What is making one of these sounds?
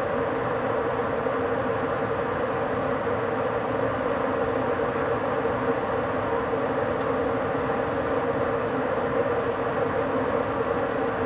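A train rumbles steadily along the rails at speed.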